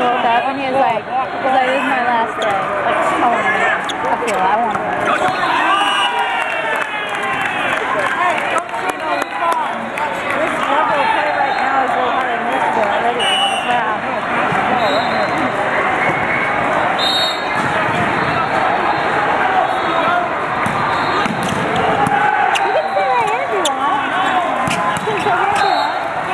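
Young men shout and cheer to each other.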